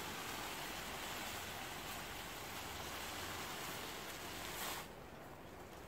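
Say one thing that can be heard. Heavy fabric rustles and scrapes as it is dragged over the ground.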